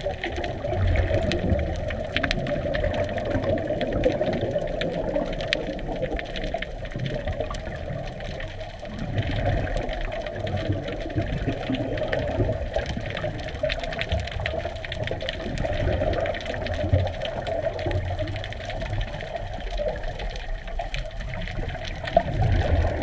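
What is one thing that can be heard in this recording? Water rumbles and hisses steadily underwater, heard close.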